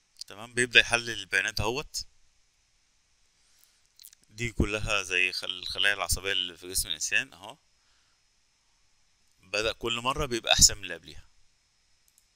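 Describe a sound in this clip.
A man talks calmly into a close microphone, in short bursts.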